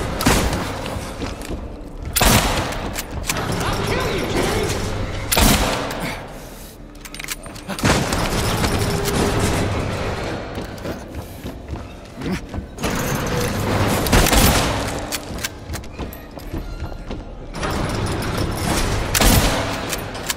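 A shotgun fires loud blasts that echo, again and again.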